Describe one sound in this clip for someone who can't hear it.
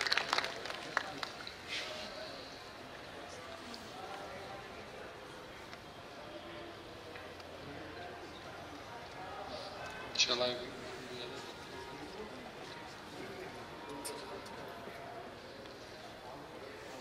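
A middle-aged man reads aloud calmly into a microphone.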